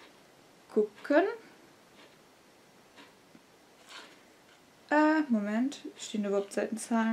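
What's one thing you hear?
A young woman speaks softly and expressively close by, as if reading aloud.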